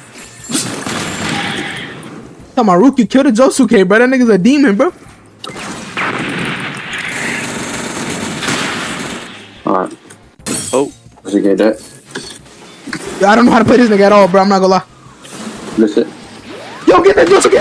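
Energy blasts whoosh and crash in quick bursts.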